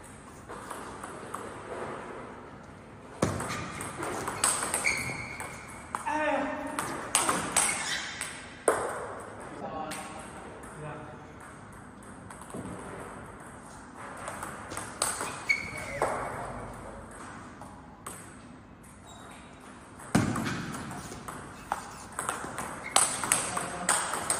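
A small plastic ball clicks back and forth off paddles and a table in a quick rally.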